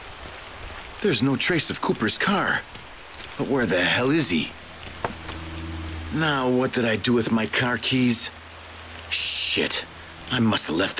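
A man talks to himself, close and clear, sounding puzzled.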